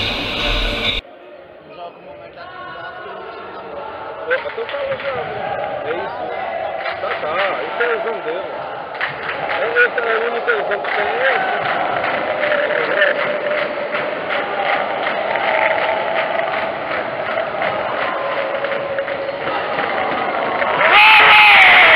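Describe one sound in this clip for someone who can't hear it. A crowd of spectators cheers and shouts.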